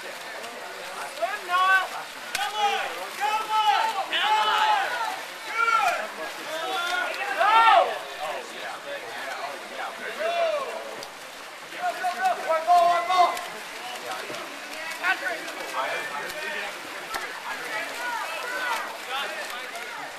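A crowd of spectators shouts and cheers loudly from the poolside.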